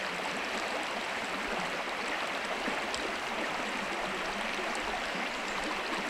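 Wooden sticks knock lightly against each other.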